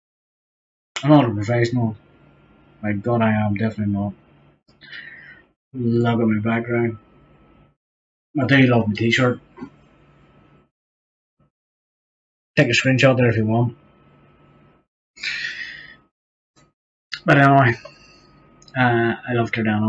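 A young man talks calmly into a close microphone, pausing between phrases.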